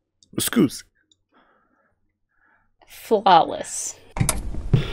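A young woman speaks briefly.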